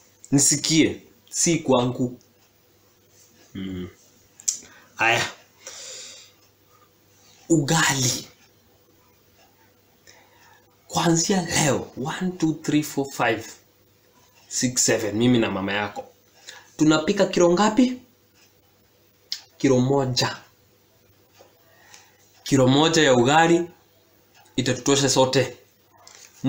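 A young man speaks close by in short bursts with pauses, with animation.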